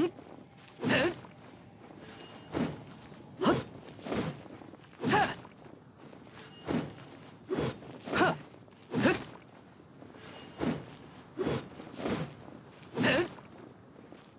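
A greatsword swishes through the air in heavy strikes.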